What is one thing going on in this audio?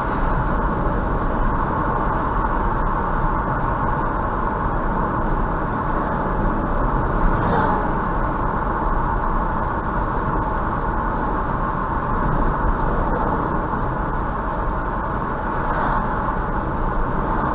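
Tyres hum steadily on a highway, heard from inside a moving car.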